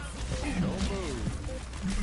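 An explosion bursts with a loud crack.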